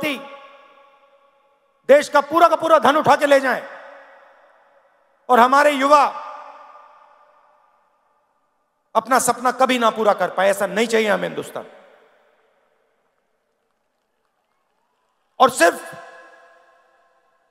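A man speaks forcefully through a loudspeaker in bursts, his voice echoing across a large open space.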